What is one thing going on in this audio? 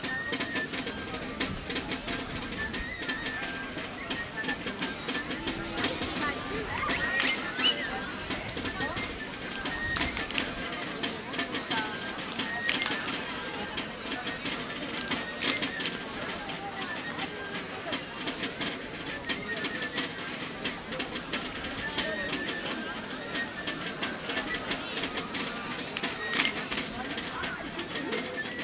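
Drums beat a steady dance rhythm outdoors.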